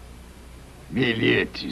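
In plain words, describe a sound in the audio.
A man speaks briefly and loudly, close by.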